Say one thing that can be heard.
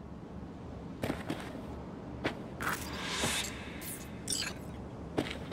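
Footsteps thud softly on a floor.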